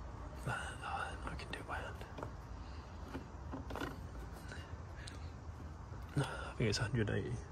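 A hand rattles and taps plastic parts under a car bonnet.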